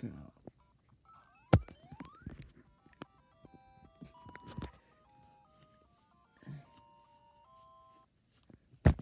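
Bright electronic video game notes play in a quick, bouncy tune.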